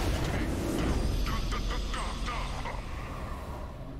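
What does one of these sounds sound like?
A triumphant victory fanfare swells.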